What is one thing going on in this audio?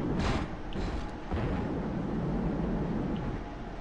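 A jetpack roars and hisses.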